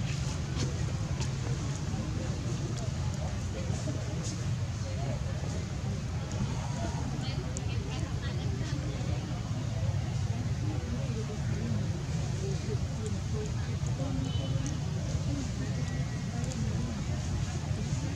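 A small monkey chews food with soft smacking sounds.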